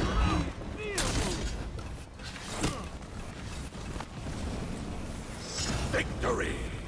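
Steel blades clash with sharp ringing hits.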